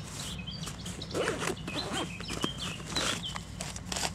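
A fabric bag rustles as hands rummage in it.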